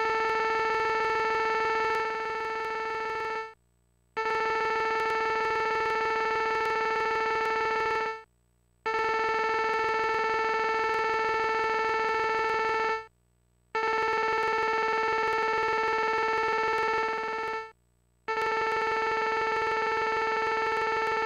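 A video game's dialogue text beeps in a steady buzzing tone as it types out, pausing between lines.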